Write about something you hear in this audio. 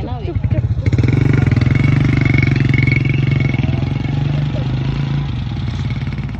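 A motorbike engine runs close by and slowly pulls away.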